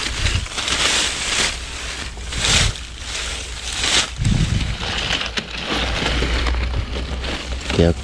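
Dry grass and leaves rustle as a hand pushes through them.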